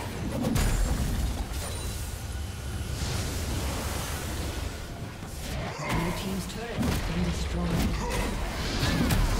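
Game spells and attacks blast, whoosh and crackle in a busy fight.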